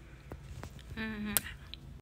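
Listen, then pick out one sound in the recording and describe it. A young woman makes a short, pitched sound with her voice close by.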